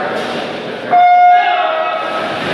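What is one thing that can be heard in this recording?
A starting signal beeps loudly.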